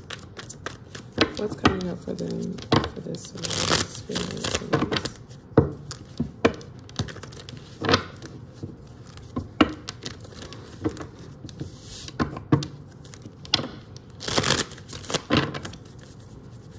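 Playing cards tap and slap on a table.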